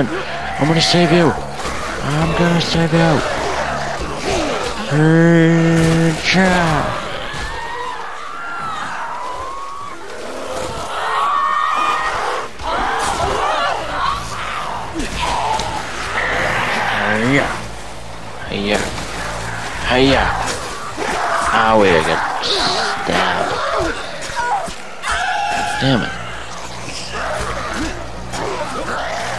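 Water splashes as figures wade through it.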